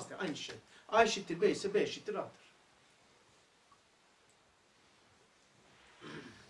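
An elderly man speaks calmly and with emphasis, close by.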